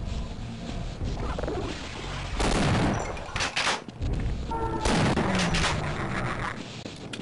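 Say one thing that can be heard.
Gunfire rattles in bursts, echoing down a hard corridor.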